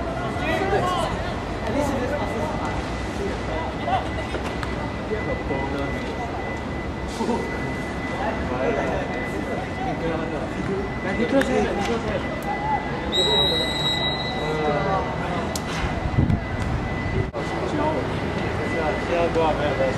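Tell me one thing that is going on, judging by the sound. Young men shout and call out across an open playing field.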